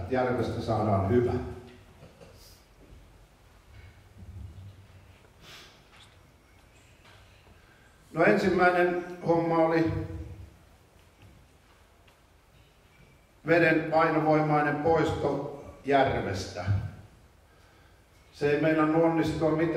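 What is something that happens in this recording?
A middle-aged man speaks calmly into a microphone, heard through loudspeakers in an echoing hall, with pauses between phrases.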